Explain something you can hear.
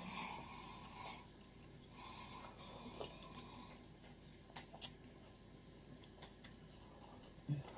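A woman sips a drink.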